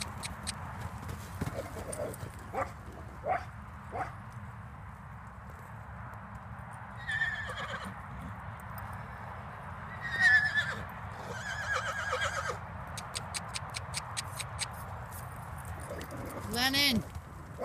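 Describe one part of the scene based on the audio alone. A horse's hooves thud on soft dirt as it trots and canters.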